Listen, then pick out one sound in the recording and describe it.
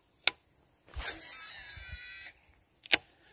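A fishing reel winds in line.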